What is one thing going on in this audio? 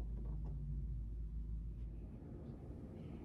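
A final chord on a grand piano rings out and fades.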